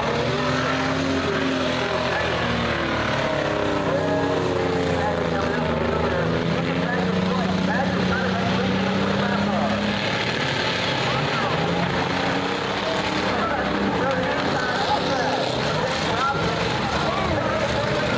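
Race car engines roar and whine loudly around a dirt track.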